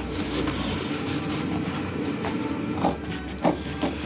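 Scissors snip through heavy fabric.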